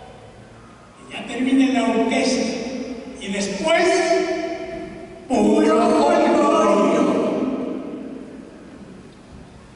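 An orchestra plays loud chords that ring out in a large echoing hall.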